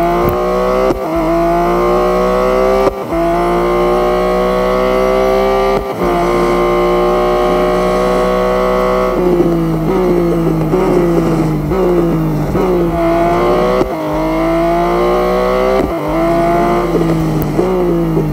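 A racing car engine roars at high revs, rising in pitch through each gear and dropping sharply at every gear change.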